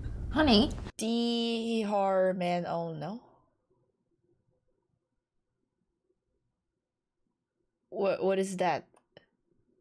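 A young woman talks and reacts close to a microphone.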